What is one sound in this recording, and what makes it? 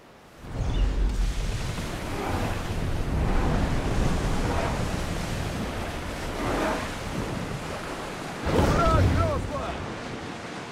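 Wind blows strongly over open water.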